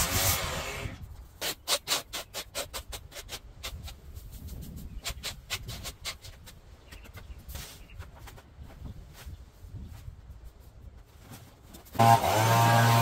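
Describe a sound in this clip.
A rake scrapes and rustles through cut grass.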